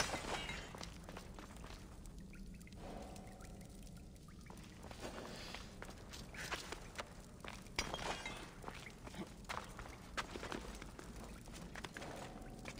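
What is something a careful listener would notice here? Footsteps crunch on gravelly ground.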